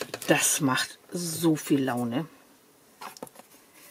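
Sticky tape crinkles and rustles as it is handled.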